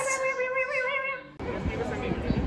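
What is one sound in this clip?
A baby coos in a high voice.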